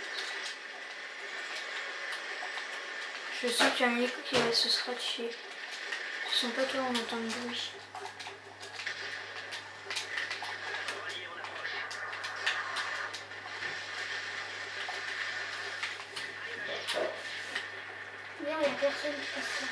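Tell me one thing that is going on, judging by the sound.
Gunshots from a video game crack through a television speaker.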